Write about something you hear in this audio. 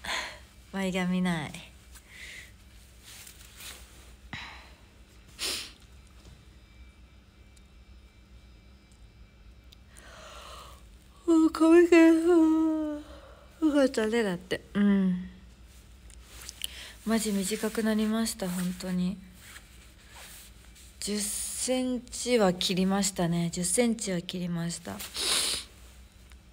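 A young woman talks close to a microphone, casually and with animation, with pauses.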